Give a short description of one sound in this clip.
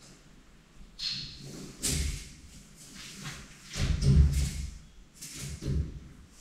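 A woman talks quietly a little further off.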